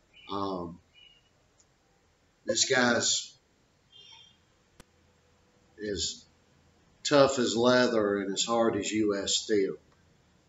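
An older man speaks calmly and close to a microphone, with pauses.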